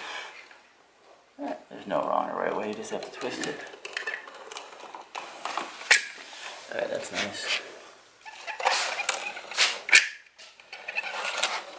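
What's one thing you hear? A caulking gun clicks as its trigger is squeezed.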